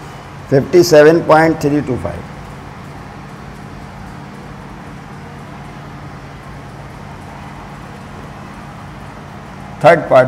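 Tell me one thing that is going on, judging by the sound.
A man speaks calmly close by, in a slightly echoing room.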